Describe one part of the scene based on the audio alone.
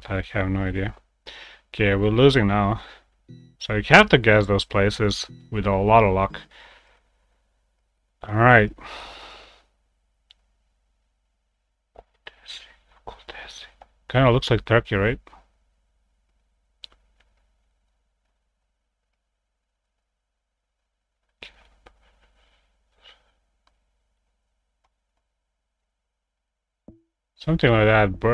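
A young man talks with animation into a close microphone, in bursts with long pauses.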